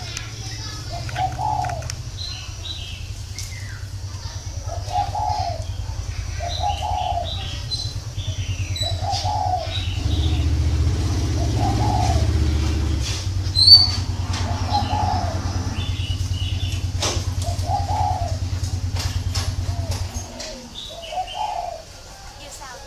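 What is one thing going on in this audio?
A bird sings short, repeated chirping phrases.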